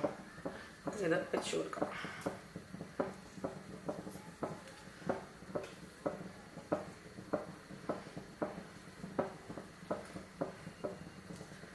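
Pieces of fish are set down softly in a metal pot.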